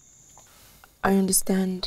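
A young woman speaks nearby with feeling.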